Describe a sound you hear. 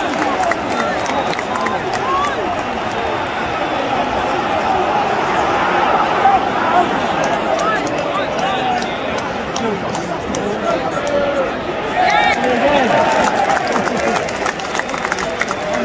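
A large stadium crowd roars and chants loudly all around.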